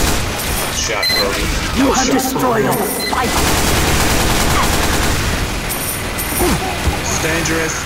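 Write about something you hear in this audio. Rapid gunfire bursts out in sharp cracks.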